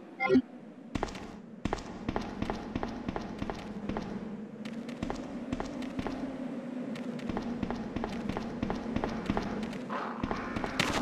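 Footsteps tap on a hard wet floor.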